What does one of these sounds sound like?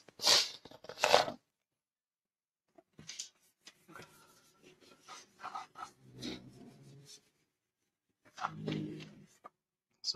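A cloth rubs and swishes across a chalkboard.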